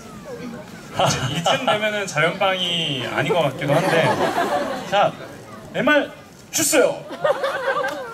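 A young man laughs loudly through a microphone.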